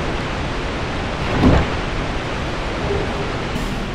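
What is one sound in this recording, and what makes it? A wooden chest creaks open with a thump.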